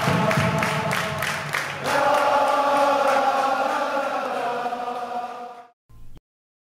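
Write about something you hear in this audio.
A large crowd chants loudly together, echoing under a low roof.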